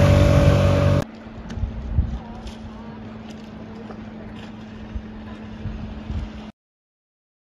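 Water splashes and rushes past a moving boat.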